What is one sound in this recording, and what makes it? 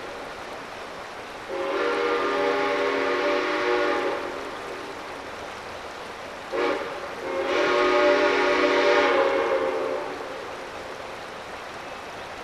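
A shallow river flows and babbles over rocks.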